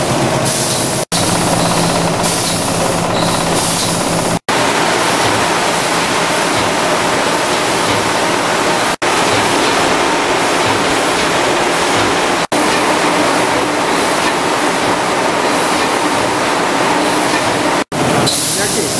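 A processing machine rumbles and hisses steadily.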